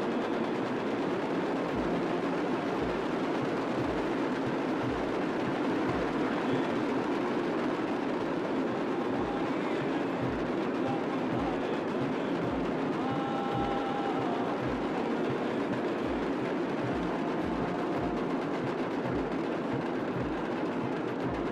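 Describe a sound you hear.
Many cymbals clash and ring along with the drums.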